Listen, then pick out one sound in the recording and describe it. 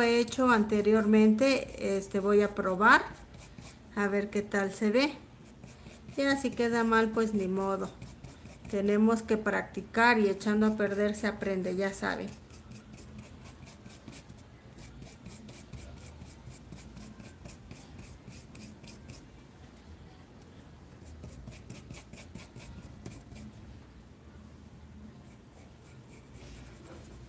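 A paintbrush dabs and brushes softly on cloth.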